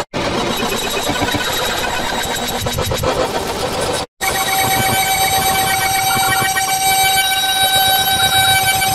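Dense, chaotic synthesized music plays loudly, breaking off briefly before starting again.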